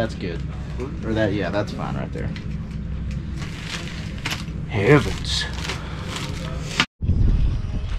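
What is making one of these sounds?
Two men talk quietly.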